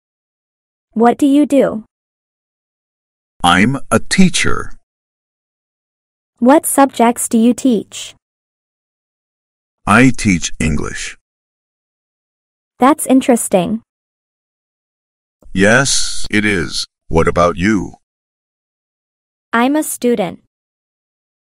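A young man speaks calmly and clearly, taking turns in a conversation.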